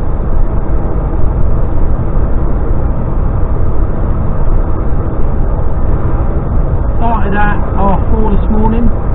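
A vehicle's engine drones and its tyres rumble steadily on a motorway.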